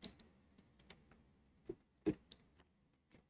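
A plastic bottle crinkles as a man drinks.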